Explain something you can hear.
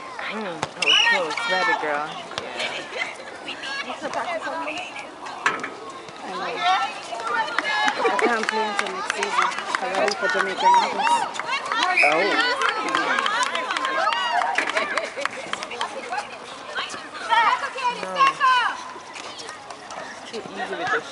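Girls shout and call out to one another outdoors.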